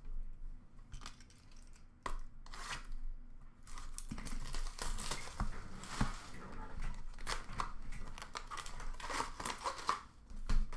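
Card packs rustle and clatter as hands sort through them.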